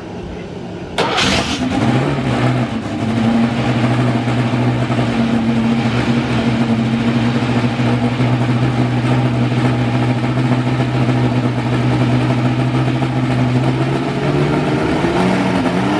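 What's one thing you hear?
A racing car engine starts up and idles with a loud, steady rumble in a large echoing hall.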